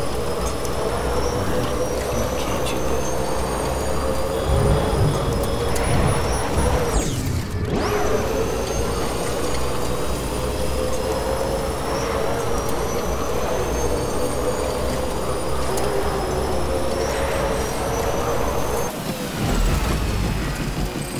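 A vehicle's engine hums steadily as it drives along a road.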